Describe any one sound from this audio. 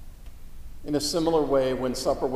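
A man chants aloud in a large echoing hall.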